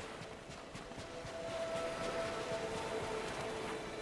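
Footsteps run across sand.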